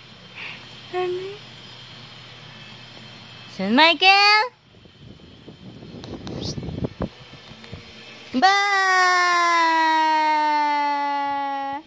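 An infant squeals and babbles close by.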